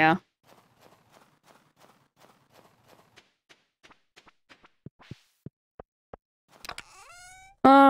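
Footsteps crunch softly in snow.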